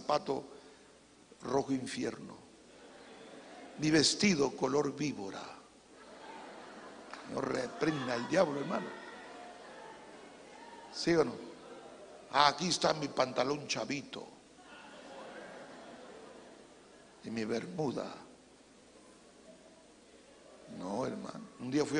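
A middle-aged man speaks with animation into a microphone, in a large echoing room.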